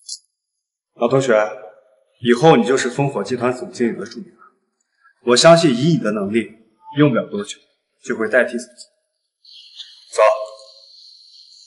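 A young man speaks firmly and with animation, close by.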